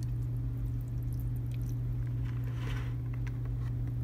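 Wet yarn squelches and drips as a hand presses it in a plastic basket.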